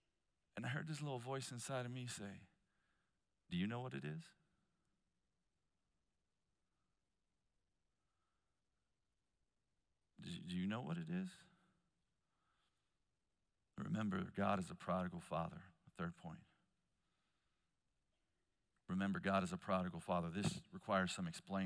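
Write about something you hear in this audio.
A man speaks calmly, with long pauses, through a microphone.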